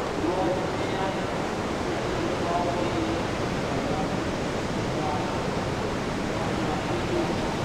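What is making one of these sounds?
Waves crash and roar steadily.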